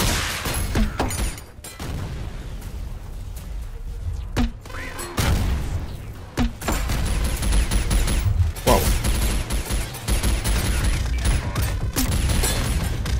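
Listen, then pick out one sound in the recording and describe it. Rapid gunfire rattles throughout.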